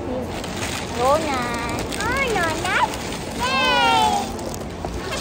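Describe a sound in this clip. A small child squeals in a high, sing-song voice.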